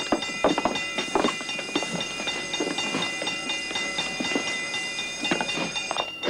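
Heavy sacks rustle and thump as they are shifted.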